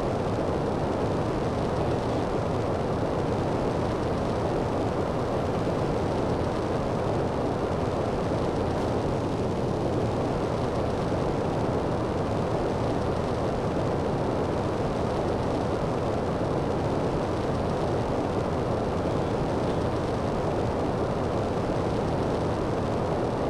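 A jetpack roars steadily.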